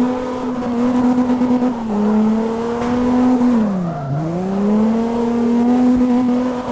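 A car engine revs hard, dipping in pitch and climbing again.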